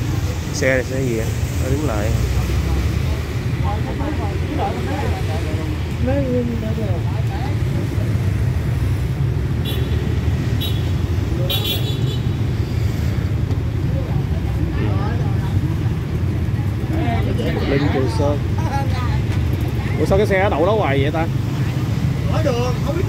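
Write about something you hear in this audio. Men and women talk casually nearby.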